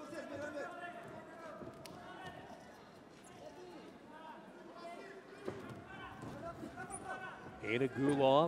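Wrestlers' feet scuff and thump on a soft mat.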